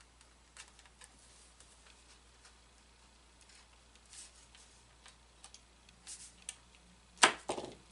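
A hand tool scrapes along a thin wooden part.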